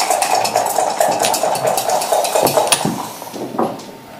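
Dice rattle and tumble onto a board.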